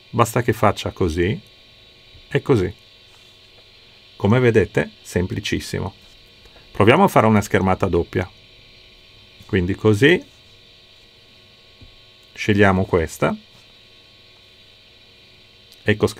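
A middle-aged man speaks calmly and explains into a close microphone, in short bursts with pauses.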